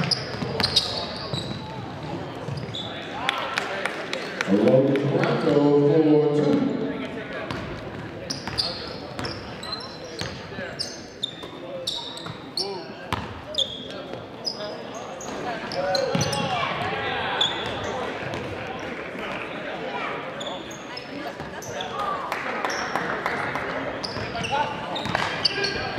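A crowd of spectators murmurs and cheers.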